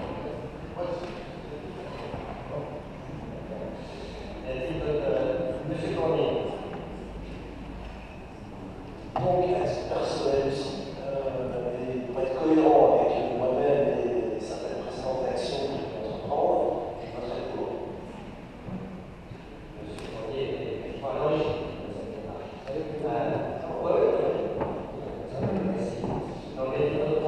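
An adult speaks steadily through a microphone in a large echoing hall.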